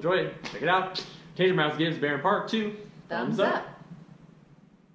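A young woman speaks cheerfully close to a microphone.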